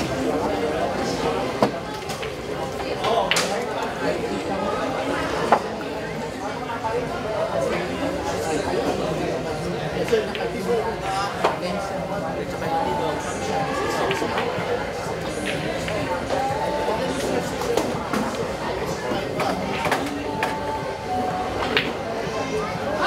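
A crowd of men chatters in the background.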